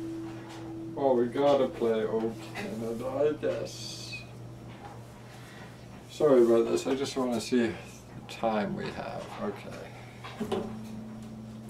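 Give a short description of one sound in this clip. A young man speaks casually nearby.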